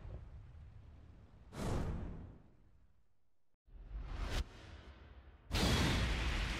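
Game sound effects whoosh and boom.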